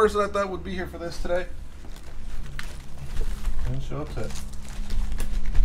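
Cardboard boxes and papers rustle and knock as they are handled.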